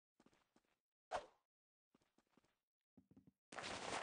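A knife swishes through the air.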